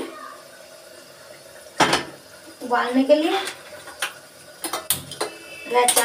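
A metal pot clanks against a stove.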